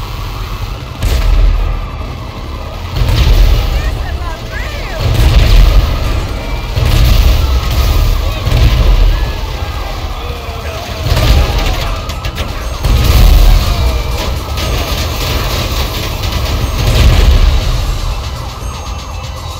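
Explosions boom repeatedly with deep rumbles.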